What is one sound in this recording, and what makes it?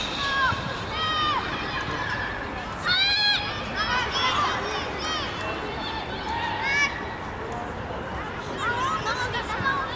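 Children shout to each other in high voices outdoors.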